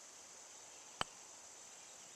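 A golf club taps a ball with a sharp click.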